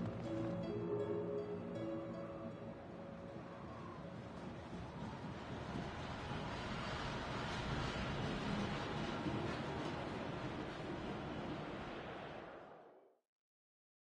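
Strong wind blows and howls outdoors, then suddenly stops.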